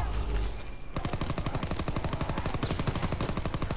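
A gun fires in a rapid burst of shots.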